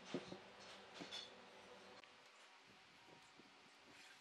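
A metal ruler clinks against a wooden log.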